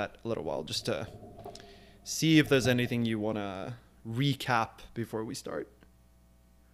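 A man speaks calmly and close into a microphone.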